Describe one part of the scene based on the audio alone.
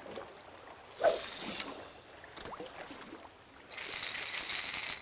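A fishing lure splashes into water.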